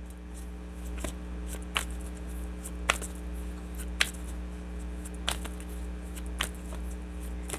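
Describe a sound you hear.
Cards shuffle and riffle in hands close by.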